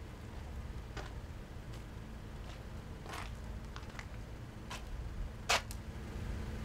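Footsteps scuff slowly on rough pavement.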